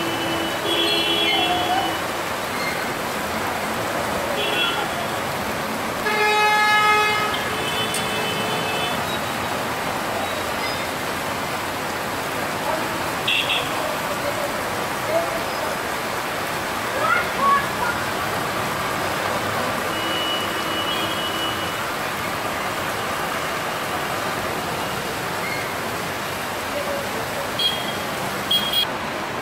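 Cars and motorcycles splash through floodwater on a road.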